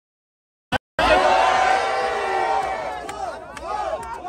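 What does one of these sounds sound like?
A crowd outdoors cheers and shouts loudly.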